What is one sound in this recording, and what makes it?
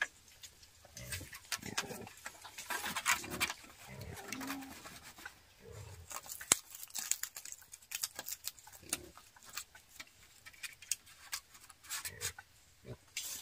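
Hands rustle and tie cord around bamboo poles.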